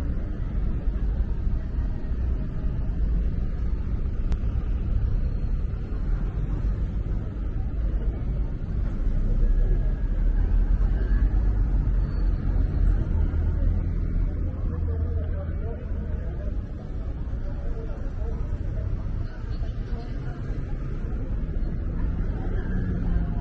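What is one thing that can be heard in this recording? Street traffic rumbles steadily nearby.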